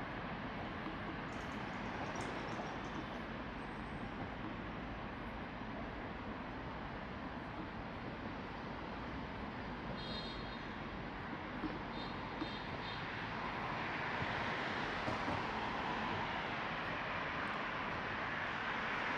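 Road traffic rumbles steadily nearby, outdoors.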